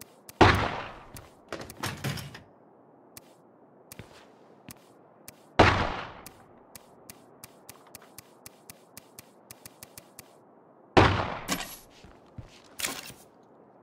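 Game menu clicks tick rapidly, one after another.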